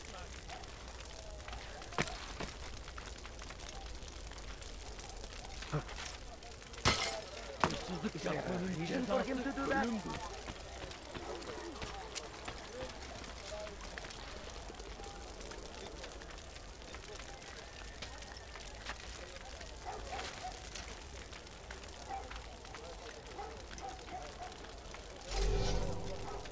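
Hands grip and scrape on stone during a climb.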